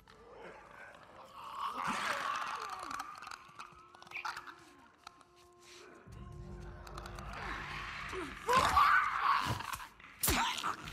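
A creature snarls and shrieks close by.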